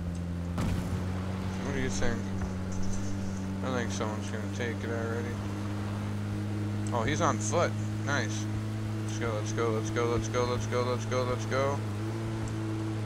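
A man talks casually, close to a microphone.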